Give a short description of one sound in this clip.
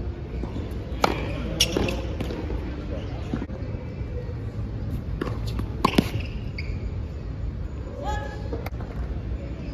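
A tennis ball is struck sharply with a racket, again and again.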